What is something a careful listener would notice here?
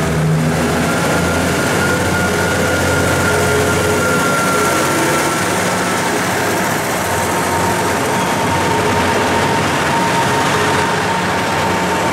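Train wheels rumble and clack over the rails as the train moves off.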